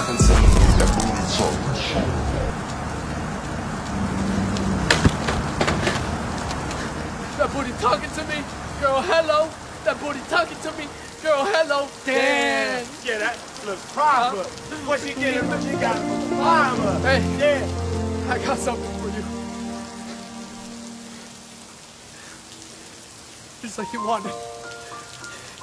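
Heavy rain pours down.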